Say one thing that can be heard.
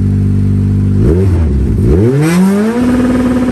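A rally car engine revs up and down sharply.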